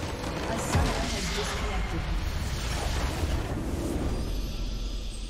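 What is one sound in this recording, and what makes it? A large crystal structure explodes and crumbles with a loud rumbling crash.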